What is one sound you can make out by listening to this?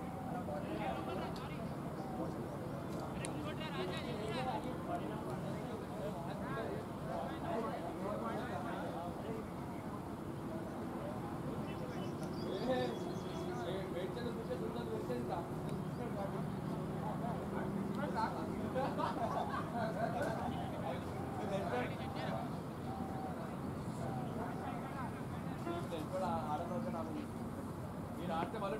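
Men talk and call out across an open field, outdoors.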